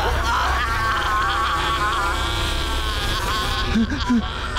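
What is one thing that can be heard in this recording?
A man screams loudly and close by.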